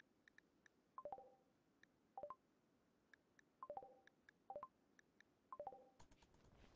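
Short soft game interface blips sound several times.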